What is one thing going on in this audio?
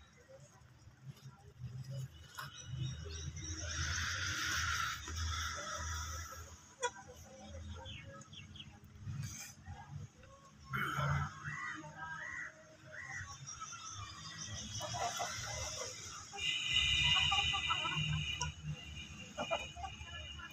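Chickens cluck softly while feeding close by.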